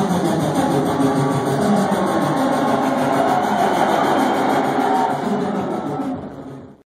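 A large crowd cheers and sings along.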